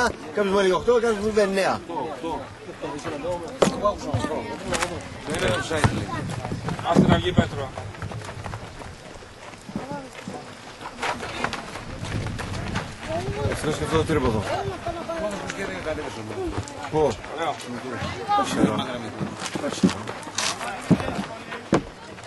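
Spectators shout and call out excitedly close by outdoors.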